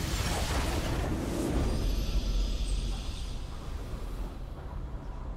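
A triumphant game fanfare swells and then fades away.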